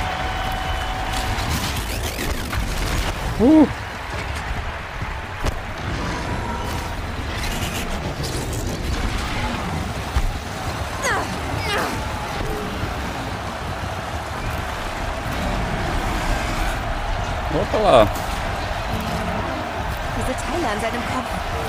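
A bowstring twangs as arrows are loosed.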